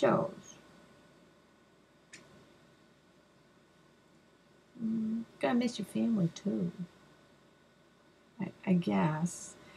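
A woman speaks playfully in a put-on voice, close by.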